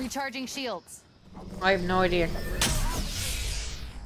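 A shield device charges up with a rising electronic whir.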